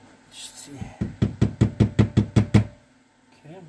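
A mallet taps rapidly on a metal engine casing.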